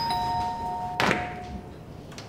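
A door handle rattles as a woman tugs at it.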